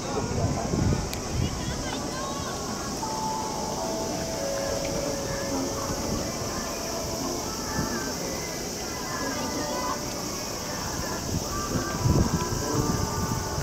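Wind gusts buffet the microphone outdoors.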